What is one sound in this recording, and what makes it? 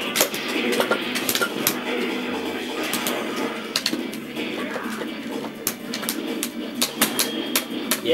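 Upbeat video game music plays through a television speaker.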